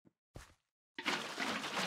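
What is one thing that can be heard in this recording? Water splashes as it pours out.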